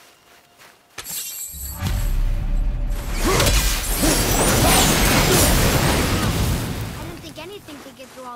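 Fire bursts into a loud roar and then dies down.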